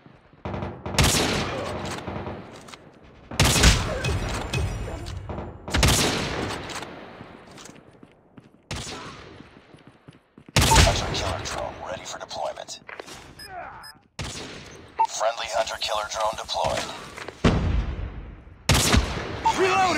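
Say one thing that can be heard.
A sniper rifle fires loud single shots that echo away.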